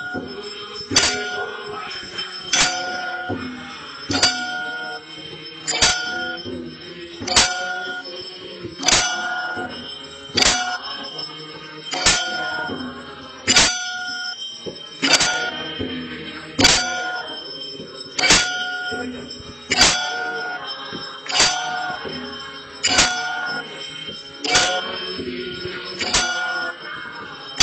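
A temple bell rings with regular, ringing strikes.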